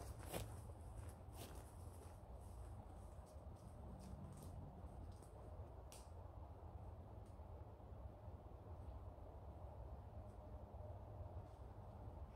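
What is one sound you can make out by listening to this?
Footsteps swish through long grass.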